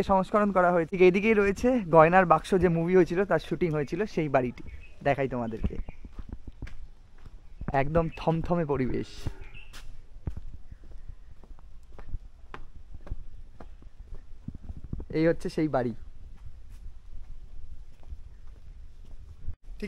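Footsteps crunch steadily on a dirt path.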